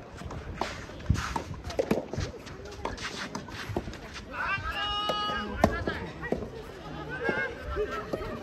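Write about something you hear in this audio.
Tennis rackets strike a ball back and forth in a rally outdoors.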